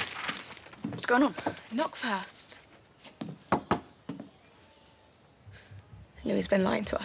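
A young girl speaks calmly close by.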